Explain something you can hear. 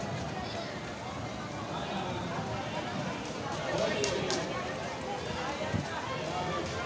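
A crowd chatters all around outdoors.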